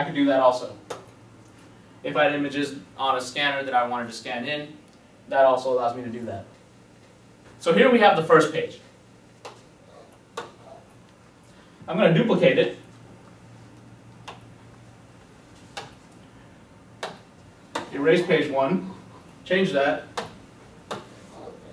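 A man speaks calmly and clearly close by, explaining in pauses.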